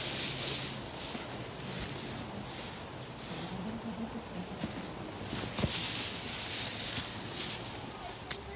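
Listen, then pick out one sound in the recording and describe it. Boots crunch and rustle through dry straw.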